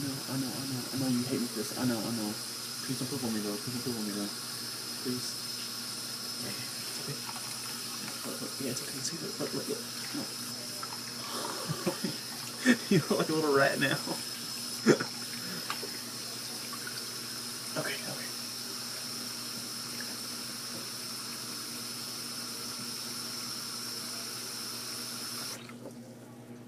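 A thin stream of water runs steadily from a tap, then stops.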